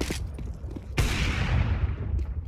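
Gunshots crack sharply close by.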